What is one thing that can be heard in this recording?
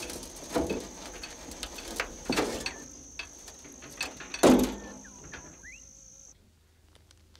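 Metal clanks and knocks as a tow hitch is worked on.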